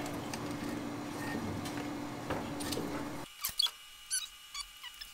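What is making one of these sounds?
Metal tools clink and tap against engine parts.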